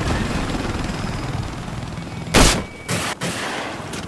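A helicopter's rotor whirs overhead.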